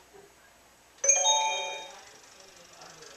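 A bright electronic game chime rings out and fades.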